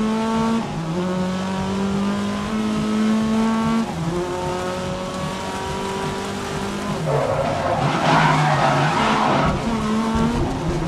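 A racing car engine roars loudly, rising in pitch and dropping as it shifts gears.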